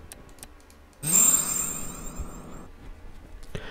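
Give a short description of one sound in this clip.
A magical shimmer chimes and sparkles.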